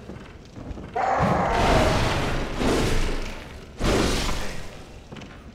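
A blade swishes and strikes in a fight.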